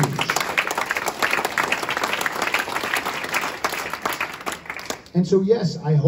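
A man speaks calmly through a microphone and loudspeaker.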